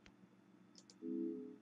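A soft electronic chime sounds.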